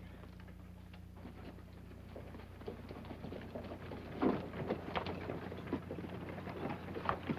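Horse hooves clop on the ground.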